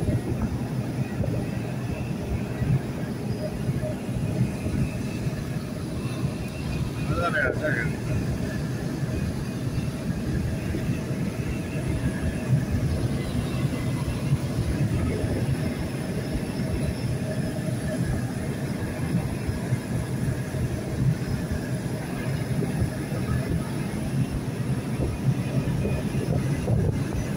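Tyres roll over a wet road with a low rushing sound.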